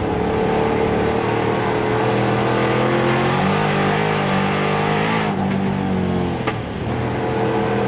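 A race car engine roars loudly up close, its pitch dipping and rising through a turn.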